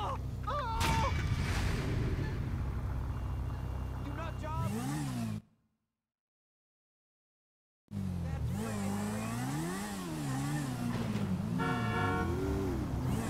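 A motorcycle engine idles and revs up and down.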